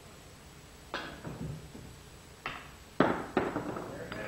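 A cue strikes a billiard ball with a sharp click.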